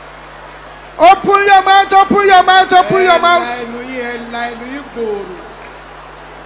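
A woman cries out loudly in prayer, close by.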